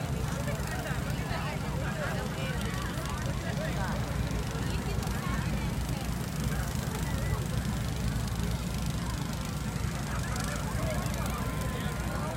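Many people chatter and call out in the distance, outdoors.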